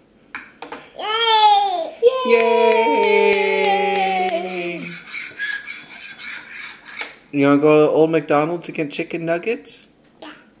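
A toddler girl sings loudly in long drawn-out notes close by.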